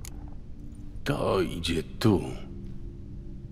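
A man speaks calmly in a low, gravelly voice.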